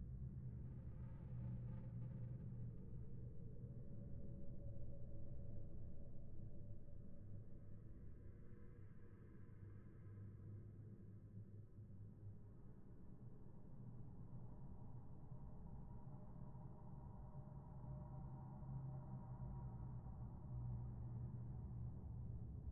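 Magic spells whoosh and crackle.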